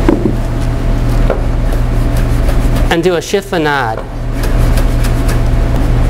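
A knife chops on a wooden board.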